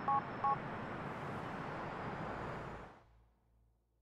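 A man's footsteps tap on pavement.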